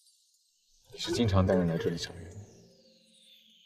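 A young man asks a question calmly, close by.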